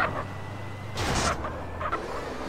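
A car lands hard with a thump after a jump.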